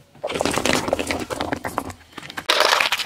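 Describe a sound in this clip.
A car tyre crushes a plastic cup with a loud crunch.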